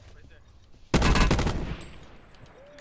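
A rifle shot cracks loudly and echoes.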